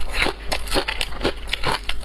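Ice cubes clink in a plastic tray as a hand picks one out.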